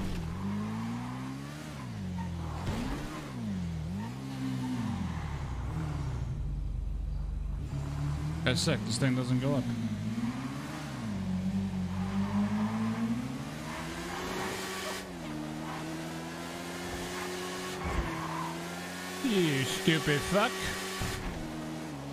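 A motorcycle engine revs up and down, then holds a steady drone as the motorcycle rides along.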